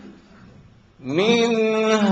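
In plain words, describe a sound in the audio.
A man sings a long, held melody through a microphone.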